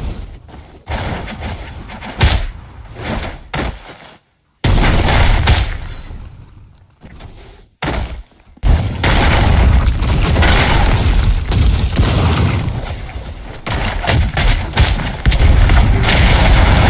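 Heavy blows crash and rubble shatters.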